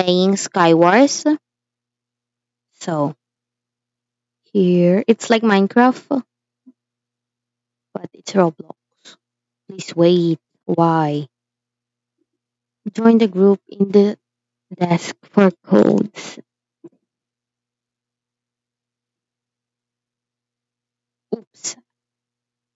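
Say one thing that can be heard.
A young girl talks with animation close to a microphone.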